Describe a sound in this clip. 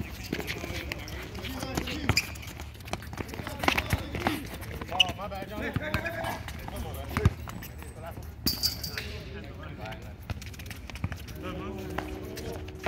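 A ball is kicked with sharp thuds on a hard court.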